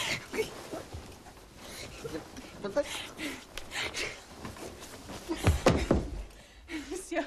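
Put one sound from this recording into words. Bedding rustles and thumps as people tussle in bed.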